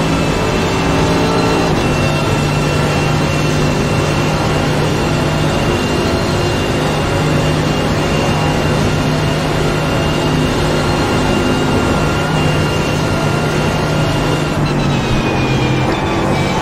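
A racing car engine roars loudly at high speed, then eases off as the car slows.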